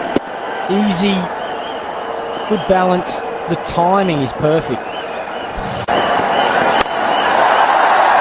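A large stadium crowd cheers.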